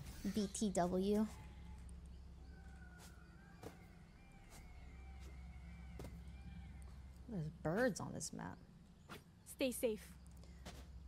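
A young woman talks with animation into a nearby microphone.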